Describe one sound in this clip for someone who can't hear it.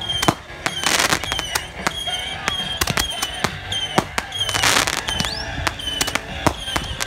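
Fireworks burst with sharp bangs and crackles.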